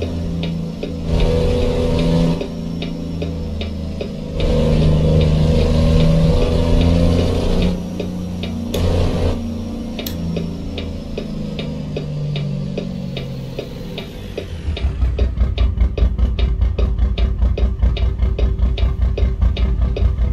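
A truck's diesel engine rumbles and revs up and down.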